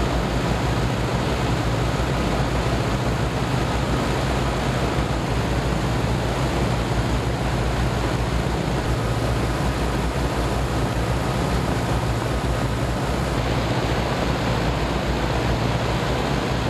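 Spinning propellers thrum with a low, steady beat.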